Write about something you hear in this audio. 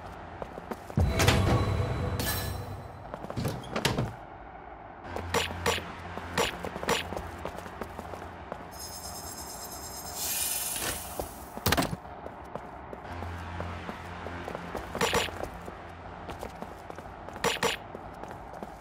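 Sharp whooshing and clanging effects sound now and then.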